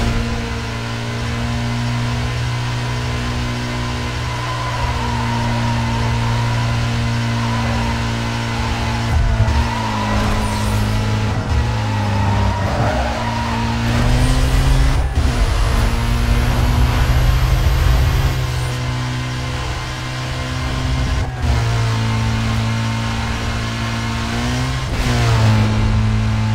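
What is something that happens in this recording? A car engine roars at high revs, shifting gears now and then.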